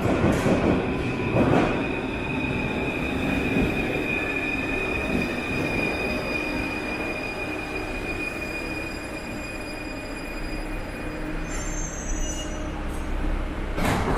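A metro train rumbles and screeches along the rails as it pulls away in an echoing underground hall.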